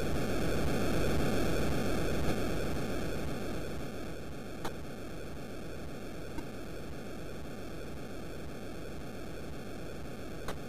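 A video game gives off a steady rushing noise that slowly grows quieter.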